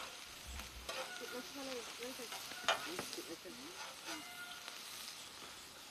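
Food sizzles on a griddle.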